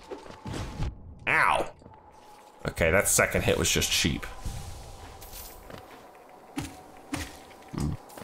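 Sharp slashing hits strike a creature.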